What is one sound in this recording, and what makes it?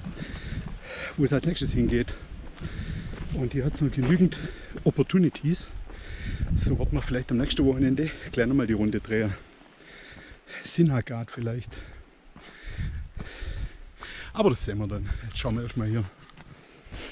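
A middle-aged man talks close to the microphone with animation.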